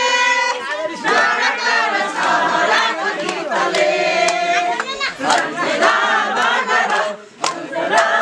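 Several people clap their hands in rhythm.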